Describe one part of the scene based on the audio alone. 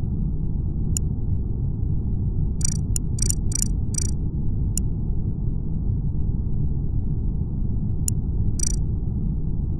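Soft interface clicks tick several times.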